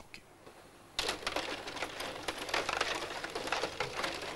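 Plastic table hockey players clatter as the puck is knocked around.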